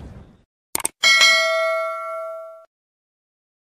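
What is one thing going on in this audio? A bell chimes and rings out.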